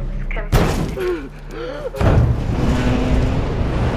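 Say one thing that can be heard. A heavy metal door unlatches and swings open with a loud clunk.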